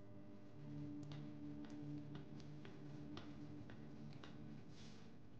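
Footsteps click on a hard floor.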